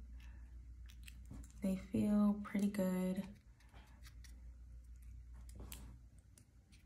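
Long false nails click and tap against each other.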